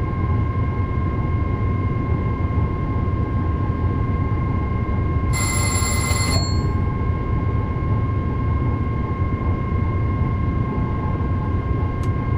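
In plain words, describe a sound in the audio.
A train rumbles steadily at speed.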